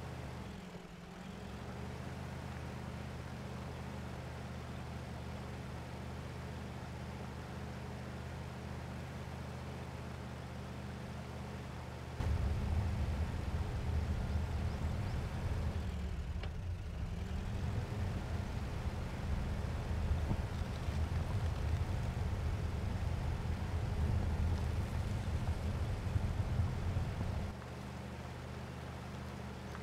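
A vehicle engine rumbles steadily, growing louder and rougher for a while before settling again.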